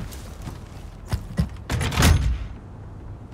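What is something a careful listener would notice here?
A heavy metal lever clanks and grinds as it is pulled.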